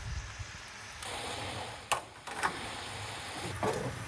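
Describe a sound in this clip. A metal tray clatters down onto a stove top.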